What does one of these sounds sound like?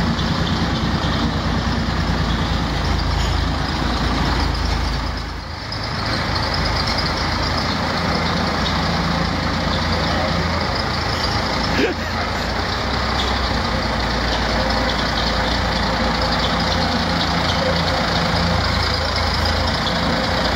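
A bus engine rumbles steadily as the bus drives slowly forward in a large echoing hall.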